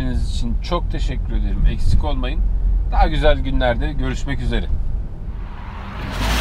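A car engine hums low from inside the cabin.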